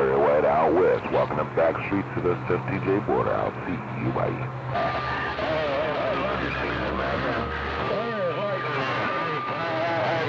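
Static hisses from a radio receiver.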